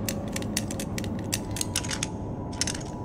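Small metal clicks sound as a combination lock's dials turn.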